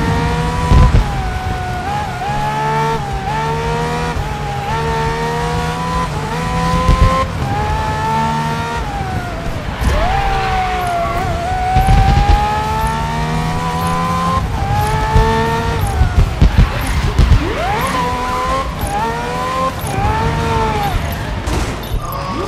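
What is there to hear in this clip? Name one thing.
A racing car engine roars at high revs, shifting gears up and down.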